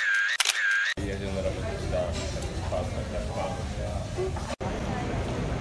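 A crowd chatters in a busy room.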